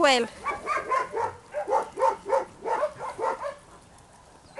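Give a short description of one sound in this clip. Dogs bark rapidly nearby.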